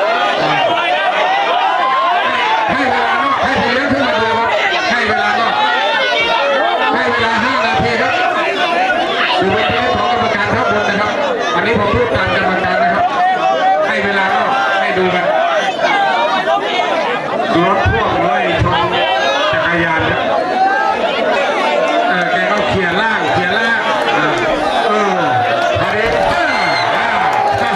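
A large crowd shouts and chatters excitedly.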